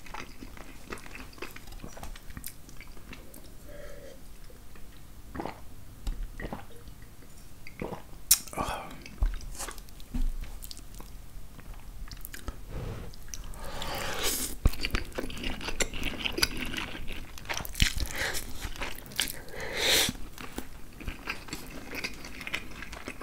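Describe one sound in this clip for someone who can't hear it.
A fork scrapes and clinks on food.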